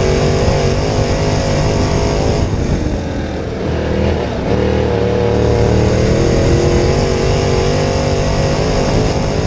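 A race car engine roars loudly from close by, easing off briefly and then revving back up.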